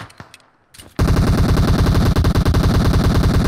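Rapid gunfire rattles loudly from a game.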